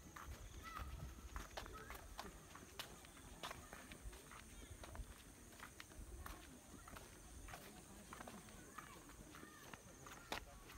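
Footsteps scuff and tap on a stone path.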